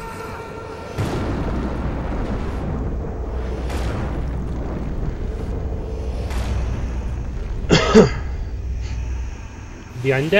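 A low magical rumble roars steadily.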